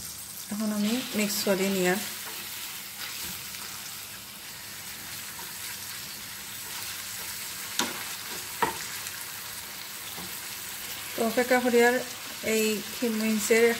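A wooden spatula scrapes and stirs in a frying pan.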